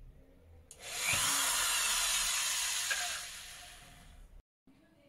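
A power drill whirs loudly.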